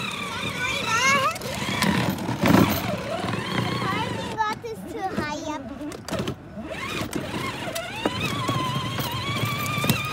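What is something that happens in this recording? A young girl talks and squeals with animation close by.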